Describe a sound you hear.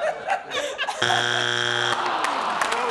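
A loud electronic buzzer sounds once.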